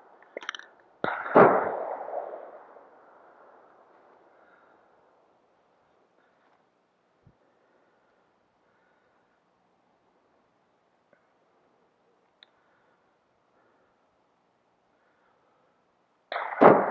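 A rifle shot cracks loudly and echoes across a valley.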